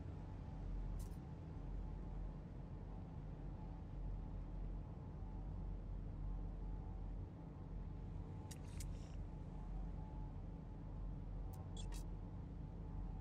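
Electronic scanner tones beep and chirp now and then.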